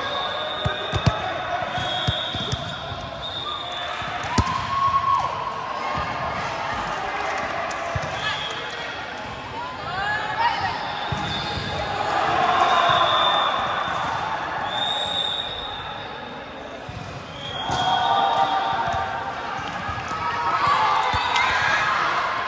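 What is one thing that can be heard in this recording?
A volleyball thuds off a player's arms.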